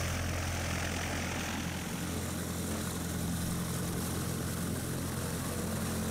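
A small propeller plane's engine drones steadily close by.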